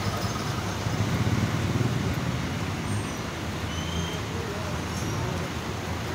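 A motorcycle with a sidecar rides along a street outdoors.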